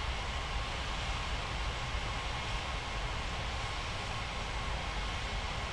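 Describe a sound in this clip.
Jet engines idle with a steady low roar.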